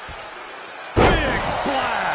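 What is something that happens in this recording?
A heavy thud of a body hitting a mat.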